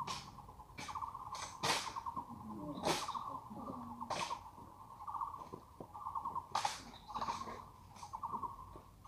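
Rifles slap and clack sharply during a drill.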